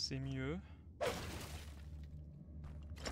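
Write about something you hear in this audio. Sword swipes and slashing sound effects burst out in a video game.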